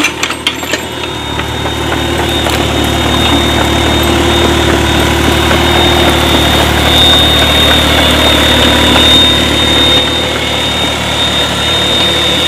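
An excavator's diesel engine rumbles steadily.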